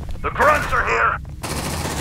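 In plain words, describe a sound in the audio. Laser guns fire in short bursts.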